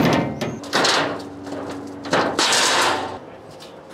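A metal sheet scrapes as two men lift it off a trailer.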